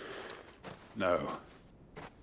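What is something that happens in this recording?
A man answers in a strained voice.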